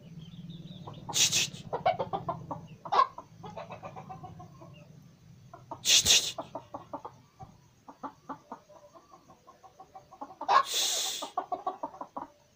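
A chicken lets out loud, harsh squawks now and then.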